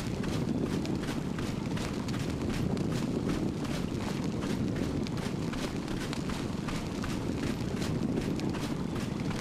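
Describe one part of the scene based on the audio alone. A torch flame roars and crackles steadily.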